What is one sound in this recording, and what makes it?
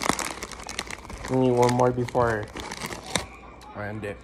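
A candy wrapper crinkles as it is torn open.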